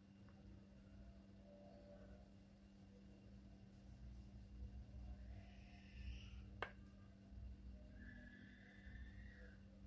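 A metal spoon scrapes softly as it spreads a thick cream.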